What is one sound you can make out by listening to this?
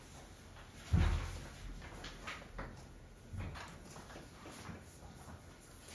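An eraser rubs softly across a whiteboard.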